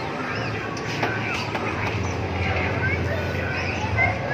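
An arcade machine plays chirping electronic jingles.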